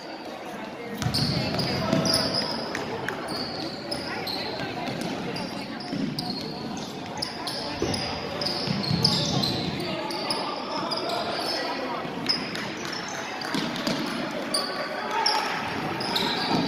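Sneakers squeak on a gym floor.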